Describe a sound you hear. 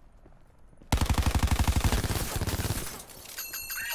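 An automatic rifle fires a rapid, loud burst.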